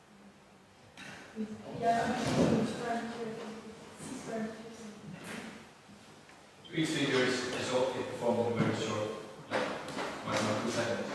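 A man speaks to a group in a large echoing hall.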